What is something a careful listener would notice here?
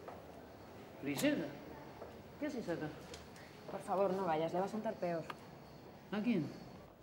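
A woman speaks urgently, close by.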